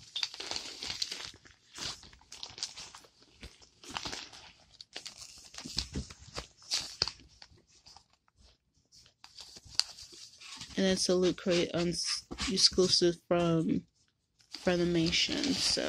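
A bag's fabric and paper tags rustle as a hand rummages through them.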